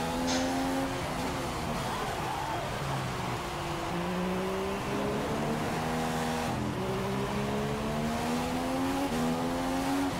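Tyres hiss on a wet track.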